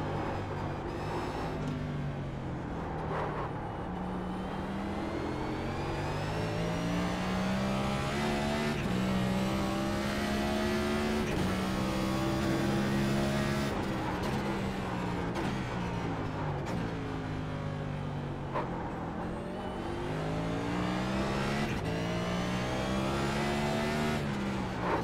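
A race car engine roars loudly, revving up through the gears and dropping in pitch when braking for corners.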